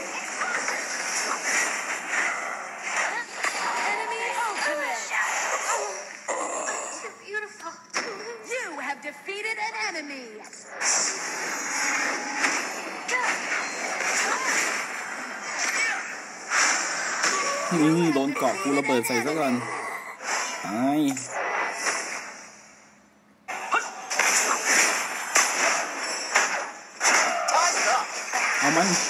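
Game fight sound effects clash, whoosh and crackle.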